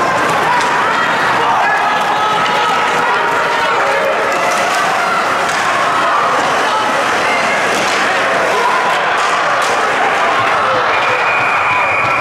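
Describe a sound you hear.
Hockey sticks clack and skates scrape on ice.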